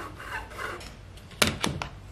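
A bar clamp clicks as it is squeezed tight.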